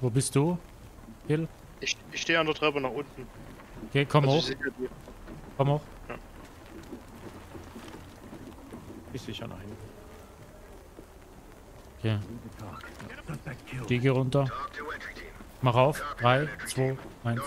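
A young man talks casually into a microphone, close up.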